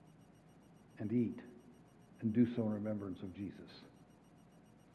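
A man speaks briefly through a microphone in a large echoing hall.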